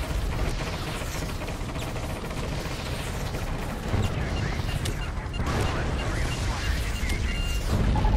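Missiles and cannon fire explode in loud blasts.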